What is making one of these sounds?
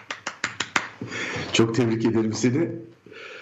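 A man laughs heartily over an online call.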